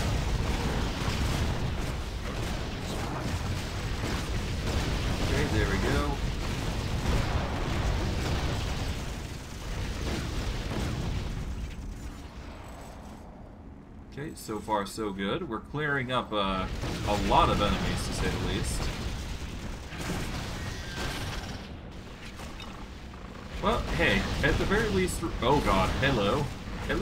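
Spell blasts and magic effects crackle and boom during a fight.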